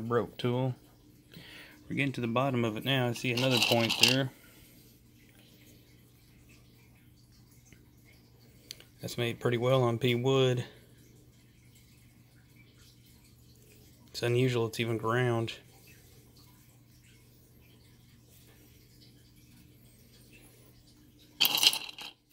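Small stones clink together in a wooden bowl.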